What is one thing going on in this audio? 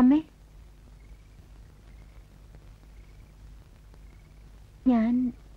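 A woman speaks a few short words up close.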